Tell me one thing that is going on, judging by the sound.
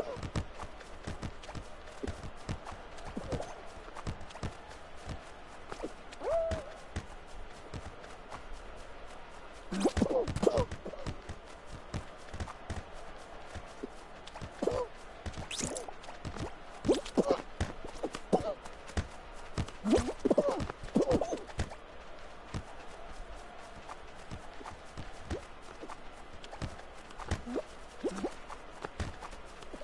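Playful game sound effects pop and bounce.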